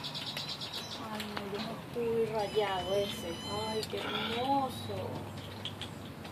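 A kitten meows loudly and repeatedly close by.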